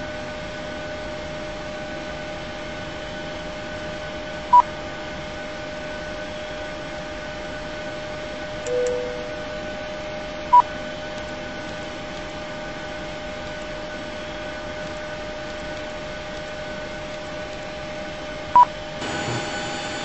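A steady low hum of aircraft systems drones throughout.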